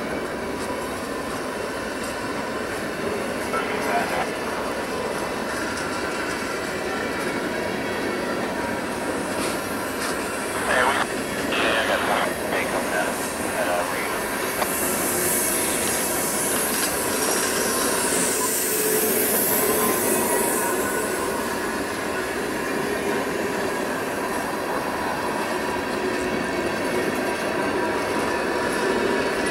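Freight cars rumble and clatter steadily along the rails close by.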